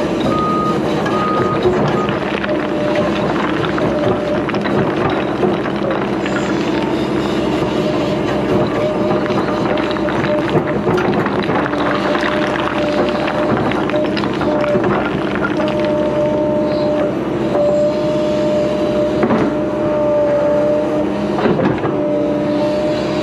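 An excavator bucket scrapes and knocks against rocks and soil.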